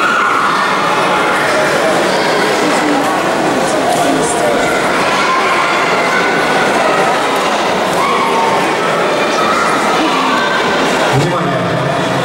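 A crowd of adults and children chatters in a large echoing hall.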